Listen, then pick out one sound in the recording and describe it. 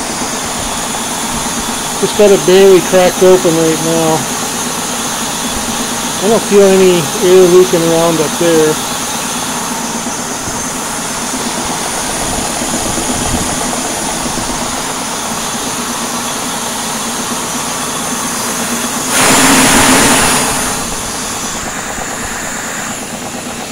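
A large metal disc spins on a spindle with a steady, low whir.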